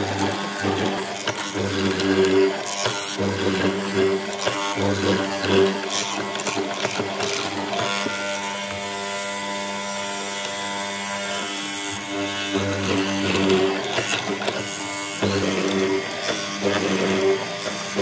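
A mortising machine's motor hums steadily.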